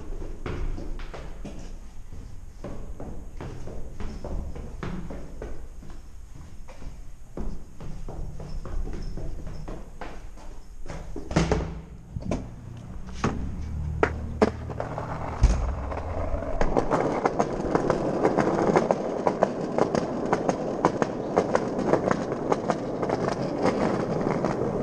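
Footsteps tap steadily down a stairwell.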